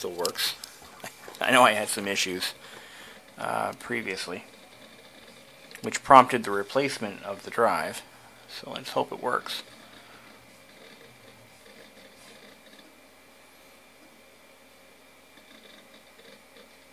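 A computer hums softly and steadily.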